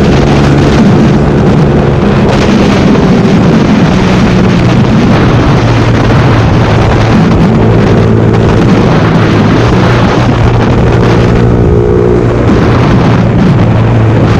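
A motorcycle engine hums steadily and shifts in pitch as the bike rides along.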